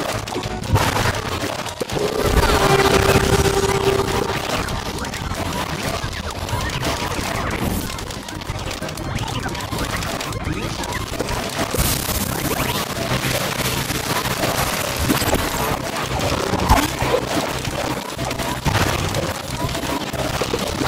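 Game plants pop and fire peas in a rapid, busy stream.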